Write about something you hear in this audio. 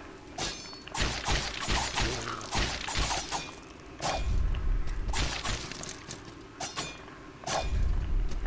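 Heavy thuds boom as blows land.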